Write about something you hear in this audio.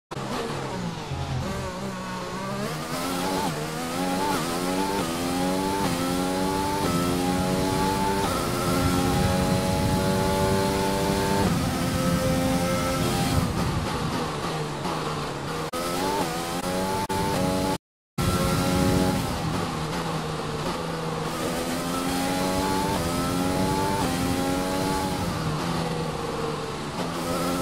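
A racing car engine screams, rising in pitch as it speeds up and dropping as it brakes for corners.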